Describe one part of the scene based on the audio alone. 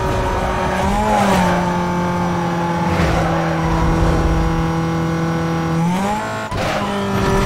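A sports car engine shifts gear.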